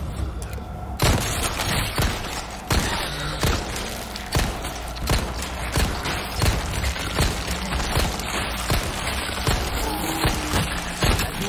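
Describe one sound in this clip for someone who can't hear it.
A pistol fires repeated loud shots.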